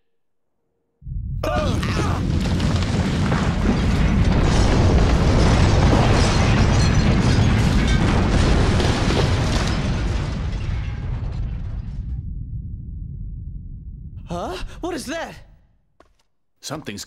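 A deep, loud rumble shakes the ground and slowly fades.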